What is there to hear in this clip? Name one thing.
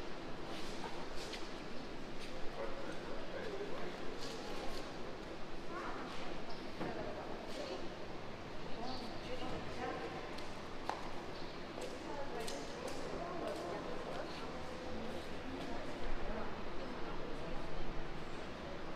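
A group of women sing together in a slightly echoing open hall.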